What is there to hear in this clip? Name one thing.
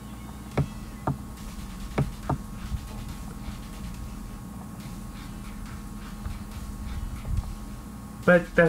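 A young man speaks quietly and close to a microphone.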